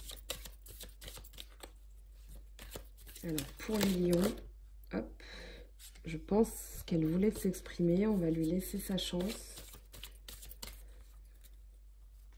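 Cards rustle and flutter as they are shuffled by hand.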